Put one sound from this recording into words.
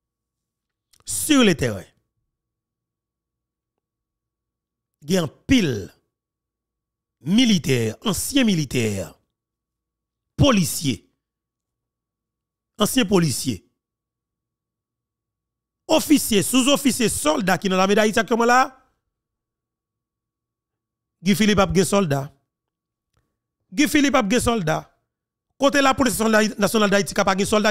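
A man speaks close into a microphone in short bursts with pauses.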